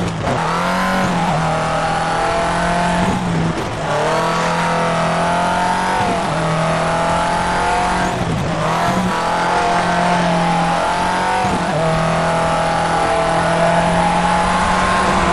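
A rally car engine revs hard, rising and dropping as it shifts gears.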